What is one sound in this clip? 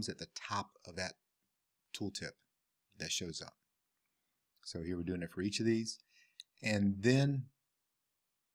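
A middle-aged man talks calmly and closely into a microphone.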